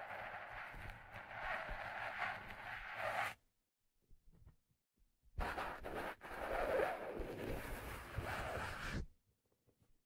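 Hands rub and brush a leather hat close to a microphone.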